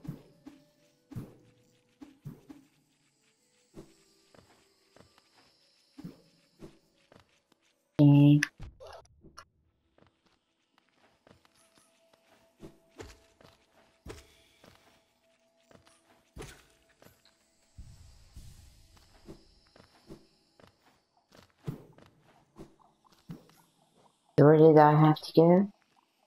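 Light footsteps patter quickly on hard ground.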